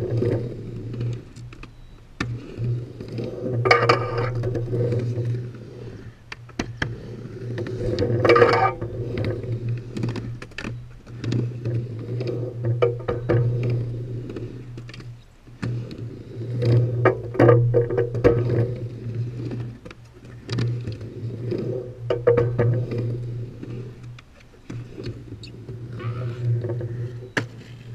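Skateboard wheels roll and rumble on a ramp.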